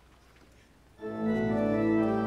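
An instrumental ensemble starts playing music in a large echoing hall.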